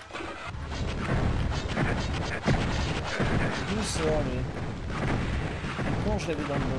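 A crossbow fires with sharp twangs and bursts.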